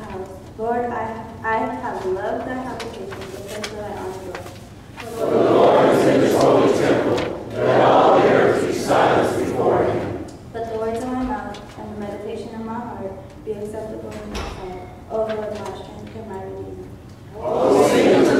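A man's voice leads through a microphone in a large echoing hall, chanting lines in a singing tone.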